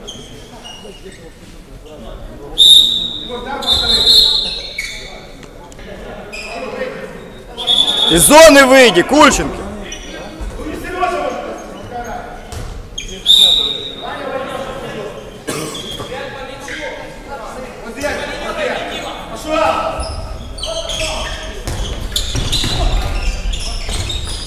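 A ball bounces on a wooden floor, echoing through a large hall.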